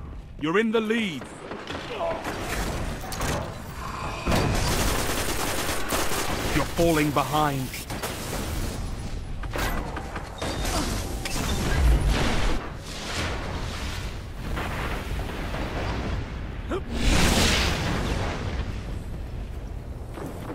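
Gunshots crack and boom in a game.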